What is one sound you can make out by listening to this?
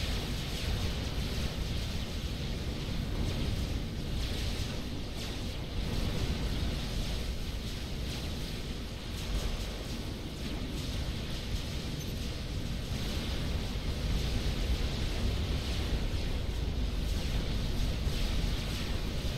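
Weapons fire and explosions rumble in a large battle.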